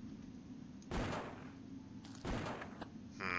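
A shotgun fires twice with loud blasts.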